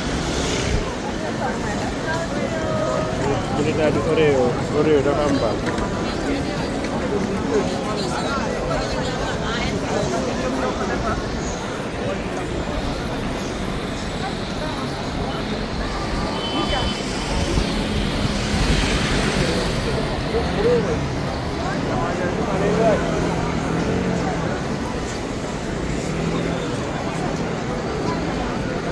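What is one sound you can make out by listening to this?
A busy crowd murmurs and chatters all around outdoors.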